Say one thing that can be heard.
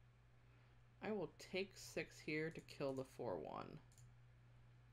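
A woman speaks briefly with animation into a close microphone.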